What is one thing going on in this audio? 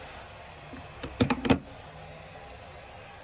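A plug clicks and knocks as it is pulled from a power strip.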